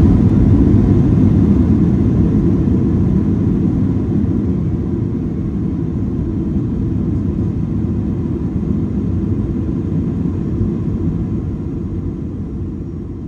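Tyres rumble on the runway.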